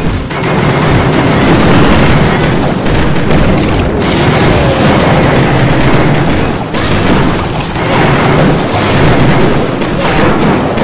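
Explosions and blasts crackle and rumble steadily in a game battle.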